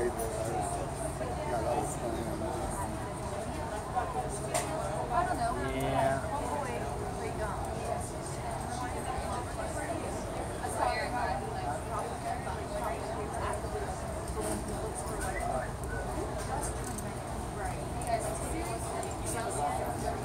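A charcoal stick scratches softly on paper.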